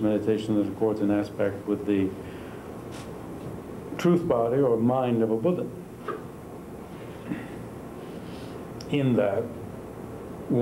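A middle-aged man speaks calmly in short bursts, close by.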